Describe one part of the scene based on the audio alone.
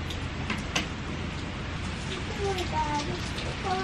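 A wooden board knocks against the floor.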